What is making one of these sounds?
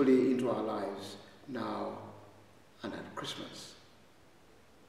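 An elderly man speaks calmly and clearly into a microphone in a reverberant hall.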